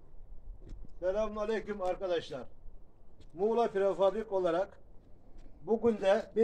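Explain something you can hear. A middle-aged man speaks loudly from a short distance.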